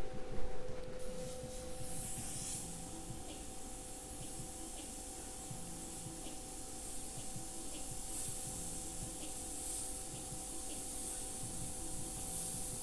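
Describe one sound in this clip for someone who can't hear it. An airbrush hisses steadily as it sprays paint.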